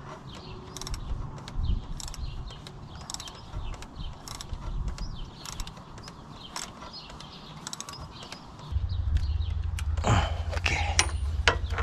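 Plastic engine parts click and rattle under hands.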